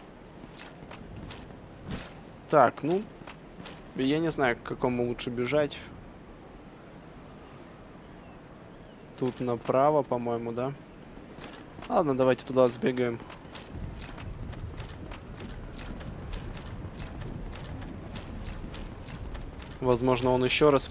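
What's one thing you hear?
Armoured footsteps clatter quickly on stone.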